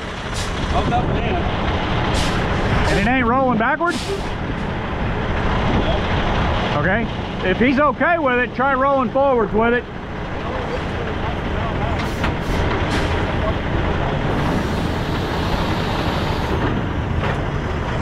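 A large diesel truck engine idles steadily nearby.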